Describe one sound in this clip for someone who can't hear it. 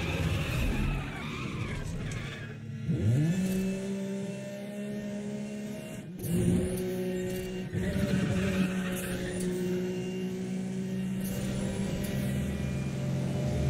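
A sports car engine roars steadily.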